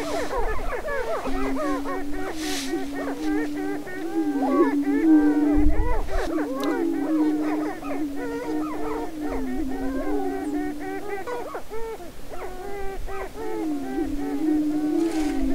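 A prairie chicken booms with a low, steady hooting moan.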